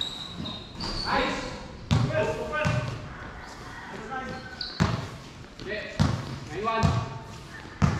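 Young men call out to each other on the court.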